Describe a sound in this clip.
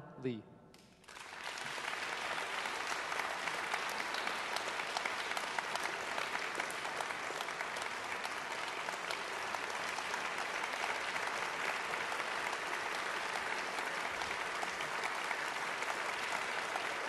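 An audience applauds steadily in a large echoing hall.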